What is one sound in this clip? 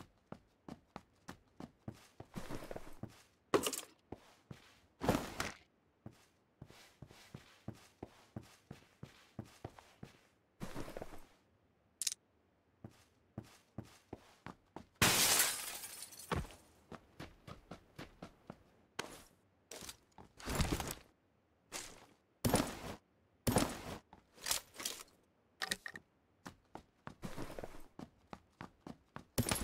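Footsteps thud quickly across hard floors.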